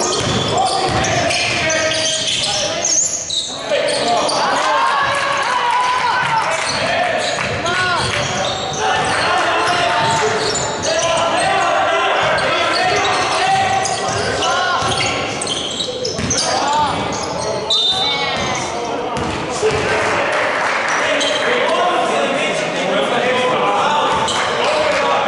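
Players call out to each other across the court.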